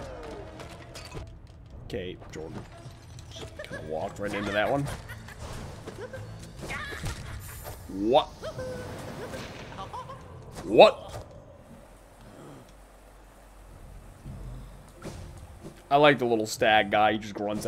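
A young man talks with animation into a microphone, now and then shouting out.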